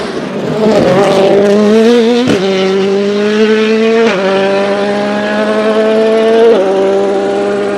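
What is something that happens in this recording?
A rally car engine roars loudly, revving up through the gears as the car speeds away.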